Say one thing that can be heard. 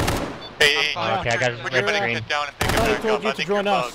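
Rifles fire sharp shots nearby.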